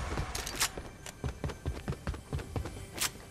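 Quick footsteps tap on a hard floor.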